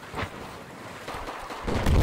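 Water sloshes and splashes.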